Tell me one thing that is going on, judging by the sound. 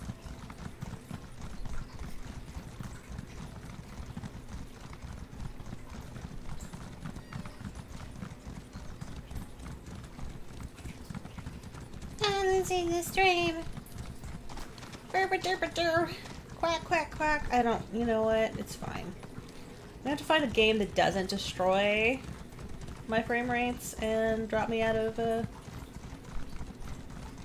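A horse's hooves thud steadily on a path.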